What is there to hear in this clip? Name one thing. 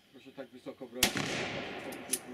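A pistol fires a loud shot that echoes outdoors.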